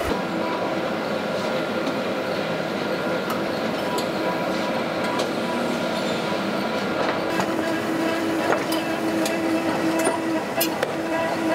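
A machine hums and whirs steadily.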